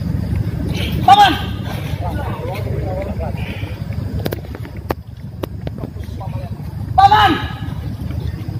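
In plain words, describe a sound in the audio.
A man shouts loudly twice.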